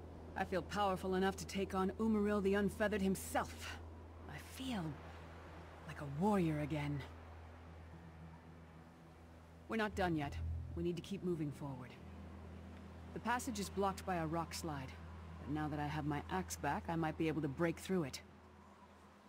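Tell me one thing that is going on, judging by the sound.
A young woman speaks calmly, close to the microphone.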